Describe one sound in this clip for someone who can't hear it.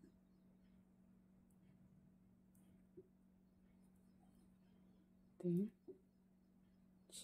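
Knitting needles click and tap softly against each other.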